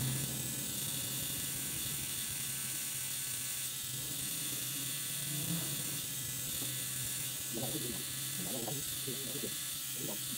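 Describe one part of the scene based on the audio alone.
A tattoo machine buzzes steadily close by.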